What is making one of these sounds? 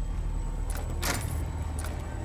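A metal key clicks and turns in a lock.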